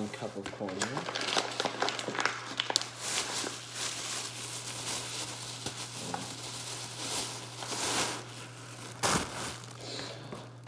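A plastic bag rustles and crackles loudly close by.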